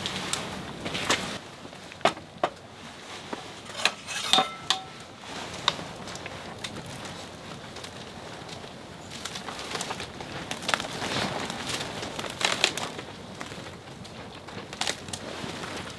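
A metal ladle clinks and scrapes against an enamel pot.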